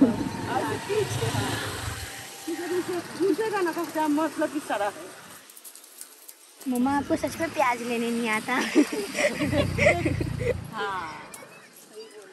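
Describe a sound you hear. A woman talks close by in a lively way.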